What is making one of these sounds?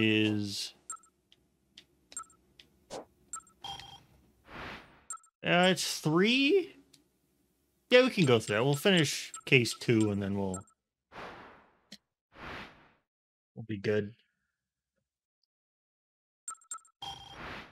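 Short electronic beeps sound as a game menu is moved through.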